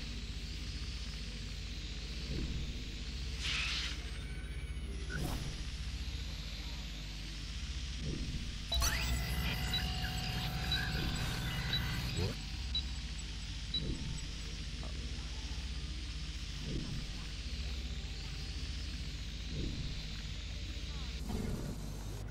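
A small drone hums with a steady high whir.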